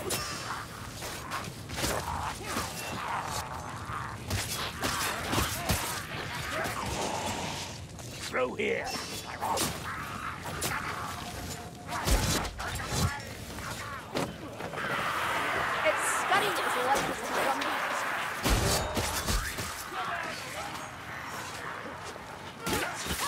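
Weapons clash and strike in close combat.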